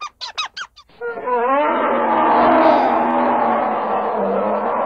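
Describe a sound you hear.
A bear groans in a long, low drawn-out moan.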